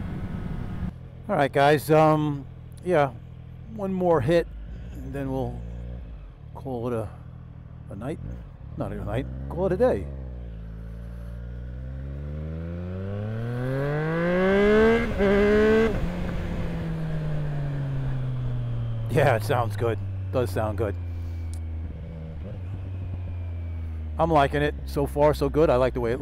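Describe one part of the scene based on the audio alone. A motorcycle engine idles and then revs up, rising in pitch as it speeds along.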